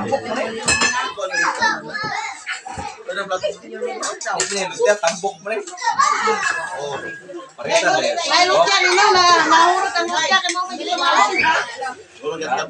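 Several women and men chatter close by.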